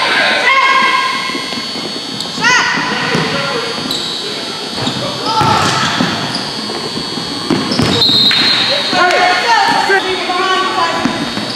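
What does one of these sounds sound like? Basketball players' sneakers squeak on a hardwood court in a large echoing gym.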